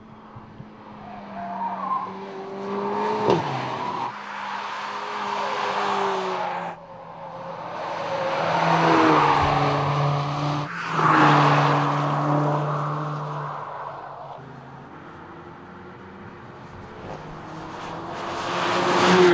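A car engine roars loudly as a car speeds past, its pitch rising and falling with the gear changes.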